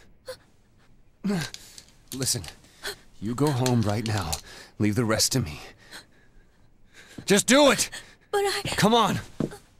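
A young woman gasps in alarm.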